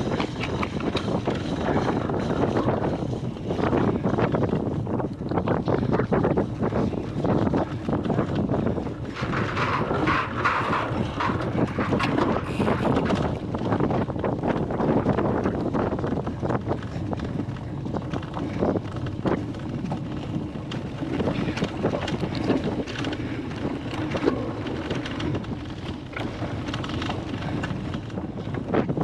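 Bicycle tyres rumble over bumpy, muddy grass.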